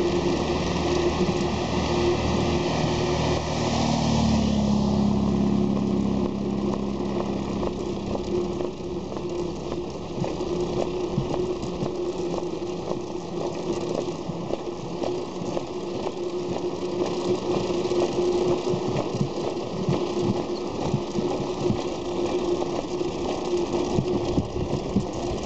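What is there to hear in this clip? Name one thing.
Tyres roll over a bumpy road surface.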